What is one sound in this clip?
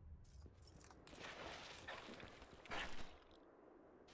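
A sword swishes and clashes in quick strikes.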